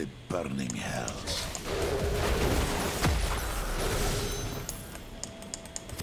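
A video game's magic attacks blast and crackle.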